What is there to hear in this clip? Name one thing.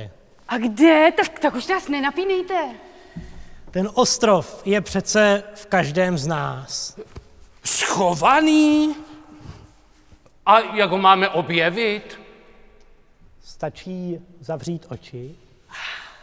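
A man sings in a strong operatic voice in a large echoing hall.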